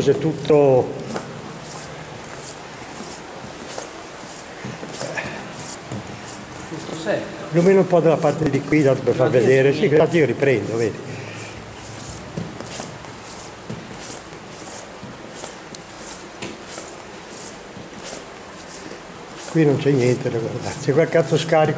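Footsteps scuff along a wet, echoing tunnel floor.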